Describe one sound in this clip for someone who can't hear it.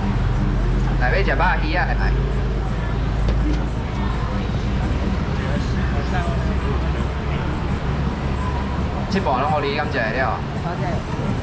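A man speaks loudly nearby.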